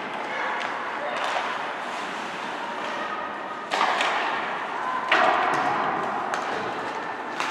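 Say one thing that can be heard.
A small crowd murmurs and cheers in a large echoing rink.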